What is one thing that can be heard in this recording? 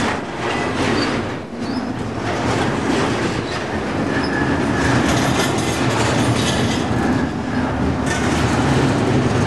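A long freight train rumbles past close by with loud, steady clattering.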